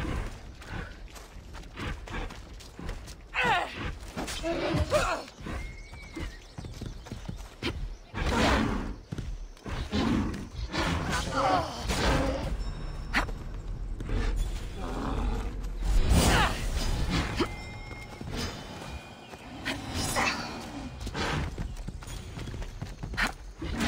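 A spear strikes a large stag with sharp blows.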